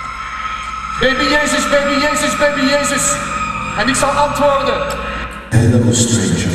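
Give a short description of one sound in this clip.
A man sings loudly into a microphone in a large echoing hall.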